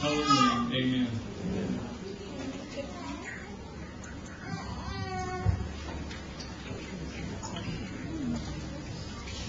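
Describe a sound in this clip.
An elderly man speaks through a microphone.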